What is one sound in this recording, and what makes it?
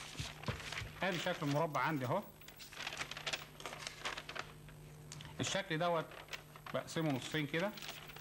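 A middle-aged man explains calmly, close by.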